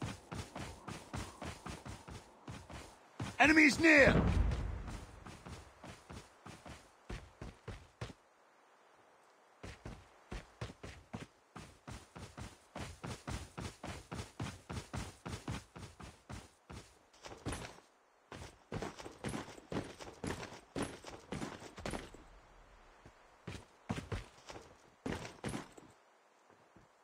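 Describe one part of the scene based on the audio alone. Footsteps run quickly over grass and rocky ground.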